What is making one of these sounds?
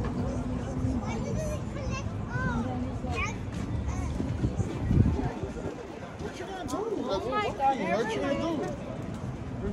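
Men and women talk casually as they stroll past nearby.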